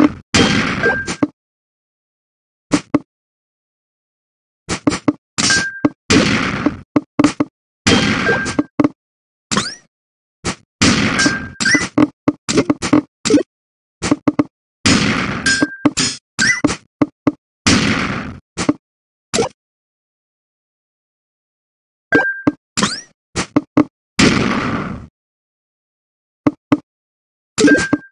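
Video game blocks drop and lock into place with short electronic clicks.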